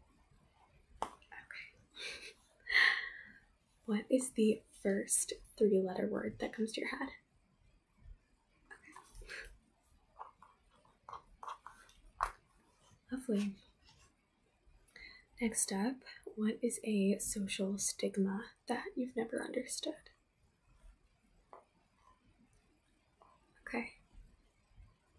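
A young woman talks calmly and close to the microphone.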